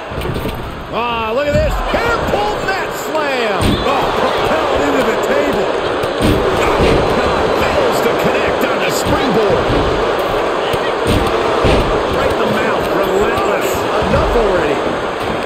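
Heavy bodies slam onto a wrestling ring with loud thuds.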